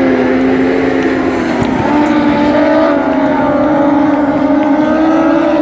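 Racing car engines roar loudly, rising and falling in pitch.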